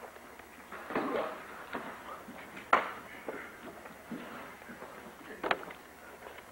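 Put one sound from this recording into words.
Bodies thud onto a padded mat.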